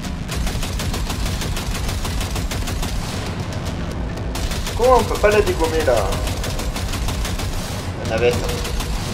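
A heavy machine gun fires in rapid, booming bursts.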